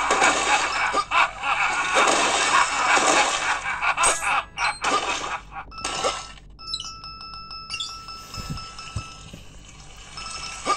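Video game music and sound effects play from small phone speakers.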